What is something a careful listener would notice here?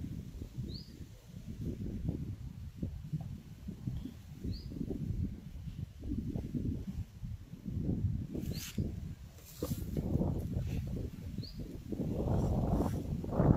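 An elephant scuffs a rubber tyre across dry straw.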